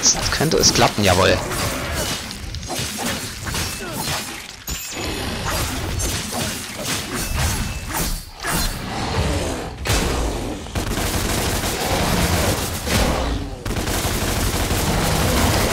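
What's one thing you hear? A large monster roars.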